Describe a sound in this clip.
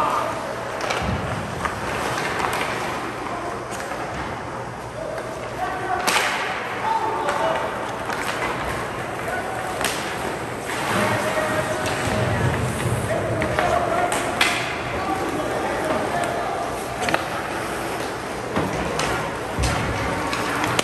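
Spectators in the stands talk and call out.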